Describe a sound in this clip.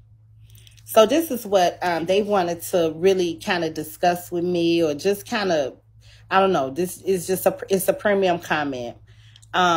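A woman speaks calmly and closely through a phone microphone.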